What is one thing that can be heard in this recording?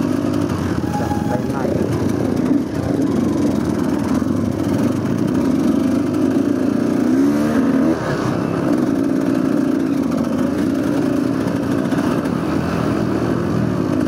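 A dirt bike engine revs and rumbles up close.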